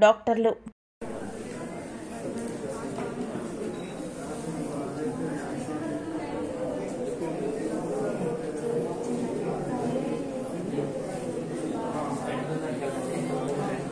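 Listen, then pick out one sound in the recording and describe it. Several men talk over each other in a noisy room.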